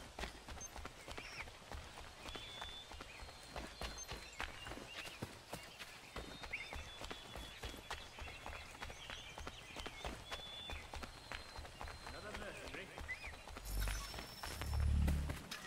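Quick footsteps run over soft ground.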